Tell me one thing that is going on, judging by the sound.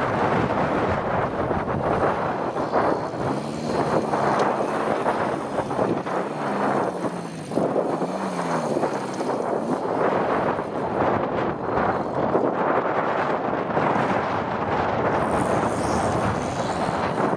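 Tyres crunch and spin on loose dirt.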